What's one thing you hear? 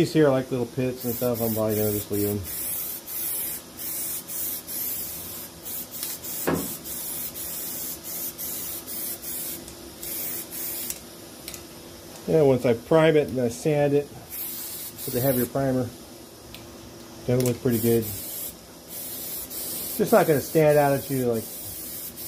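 A spray can hisses in short and long bursts.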